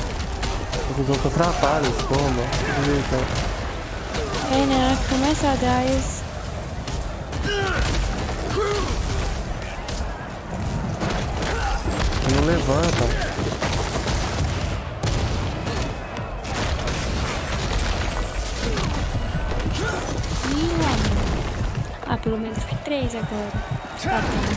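Magic spells crackle and burst in a game.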